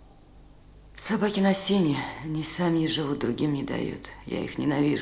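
A man speaks calmly and earnestly nearby.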